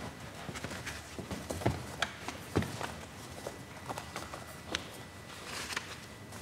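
Footsteps knock on a wooden floor in a large echoing room.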